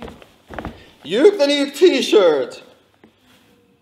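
A young man exclaims loudly.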